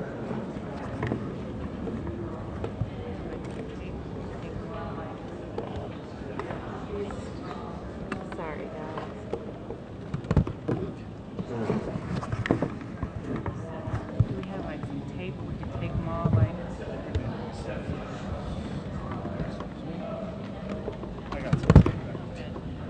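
Microphones thump and knock as they are handled.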